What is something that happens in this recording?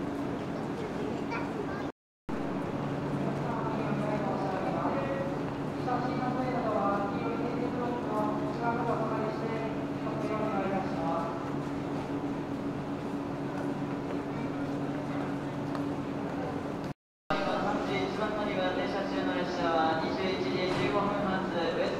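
A train engine idles with a steady low hum.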